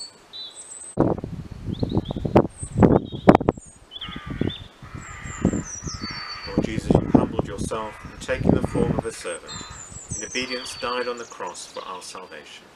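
An elderly man speaks calmly and slowly, close by, outdoors.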